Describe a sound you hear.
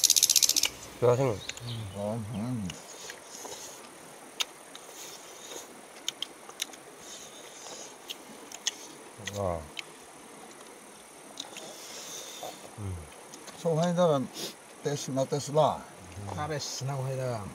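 A young man talks casually close by, outdoors.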